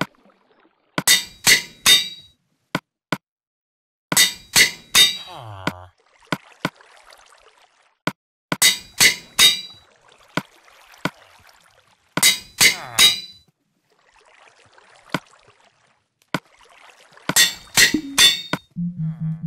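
An anvil clangs with ringing metallic strikes.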